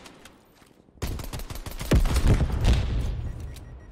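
A pistol fires a quick run of shots.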